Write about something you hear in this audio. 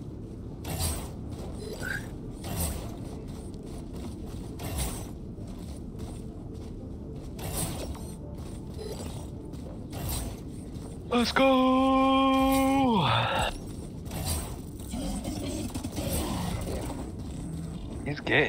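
Energy blades whoosh as a robot swings them.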